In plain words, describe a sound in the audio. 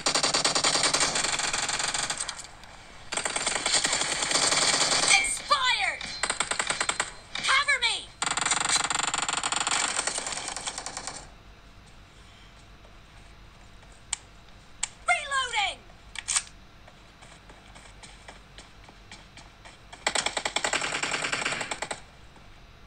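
A mobile game plays loud bursts of sound effects through a small phone speaker.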